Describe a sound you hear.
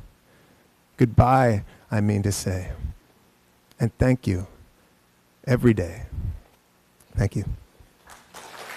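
A man reads aloud calmly into a microphone.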